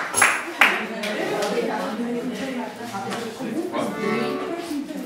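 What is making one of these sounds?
Several women talk nearby in a room.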